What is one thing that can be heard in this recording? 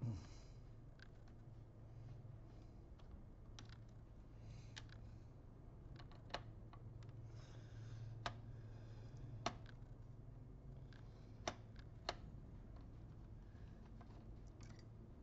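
Small metal parts click and tap close by.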